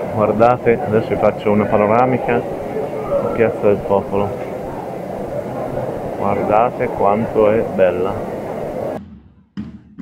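A crowd chatters outdoors in an open square.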